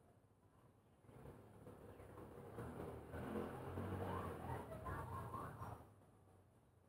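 Wind rustles the leaves of the trees.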